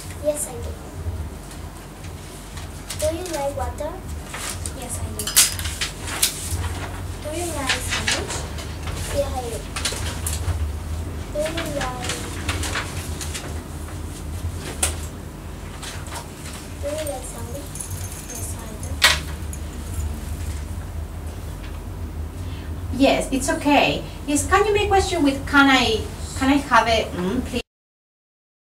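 A woman speaks calmly and clearly nearby.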